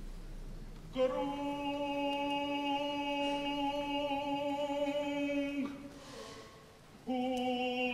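A man sings long, sustained notes in a large echoing hall.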